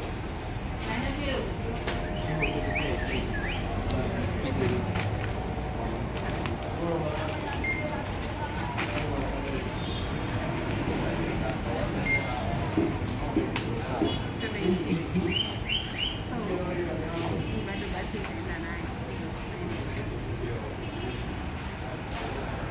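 A woman talks nearby in a casual tone.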